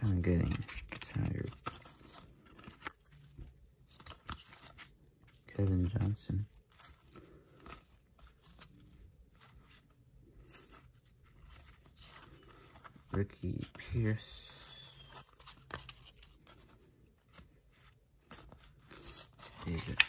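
Cardboard trading cards rustle and flick as hands shuffle through them, close up.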